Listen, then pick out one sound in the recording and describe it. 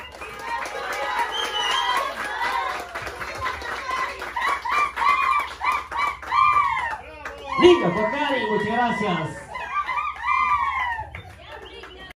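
A group of women sing together loudly in a room.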